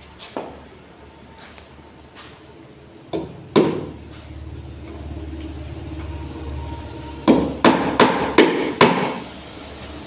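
A hammer knocks on wooden boards with sharp blows.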